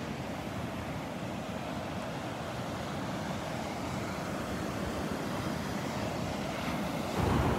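Ocean waves break and wash steadily onto the shore.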